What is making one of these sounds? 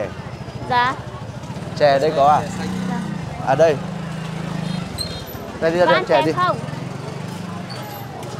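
A motorbike engine putters past.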